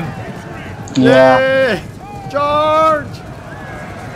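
Horses whinny loudly.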